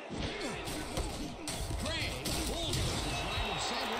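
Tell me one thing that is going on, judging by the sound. Football players collide and thud in a tackle.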